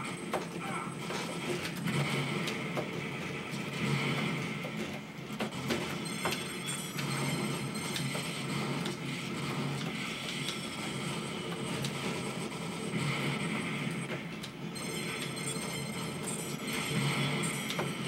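Arcade game music plays loudly through small speakers.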